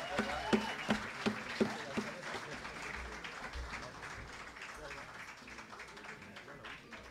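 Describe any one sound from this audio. A string ensemble strums guitars and mandolins in a lively rhythm.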